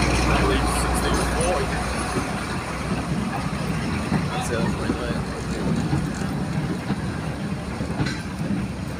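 Freight wagons rattle and clatter over the rails.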